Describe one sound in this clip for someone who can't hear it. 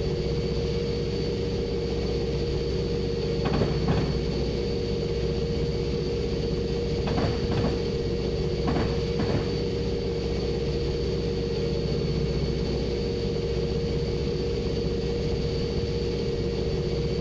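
A diesel locomotive engine hums steadily.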